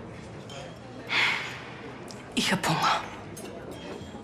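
A young woman speaks with feeling, close by.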